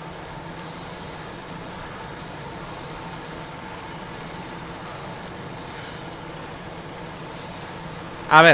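Bicycle wheels whir steadily on a road.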